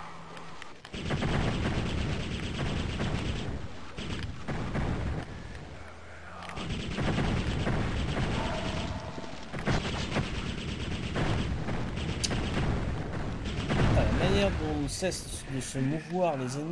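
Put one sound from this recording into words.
Gunfire and explosions blast from a game.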